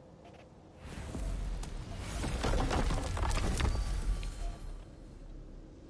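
A glowing gate opens with a loud rushing whoosh.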